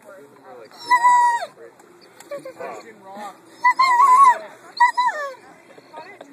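A large dog whines in high, drawn-out cries close by.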